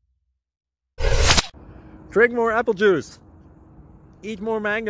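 A young man speaks with animation, close to the microphone.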